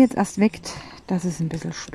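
Small plastic beads click and rattle in a tray.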